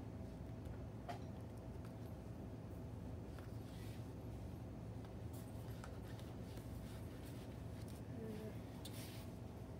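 Plastic packages rustle and crinkle as a hand handles them.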